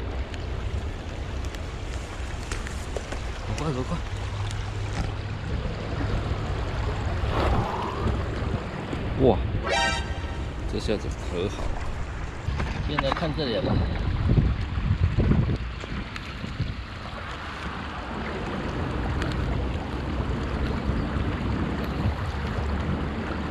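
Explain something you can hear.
Water flows and laps against stones.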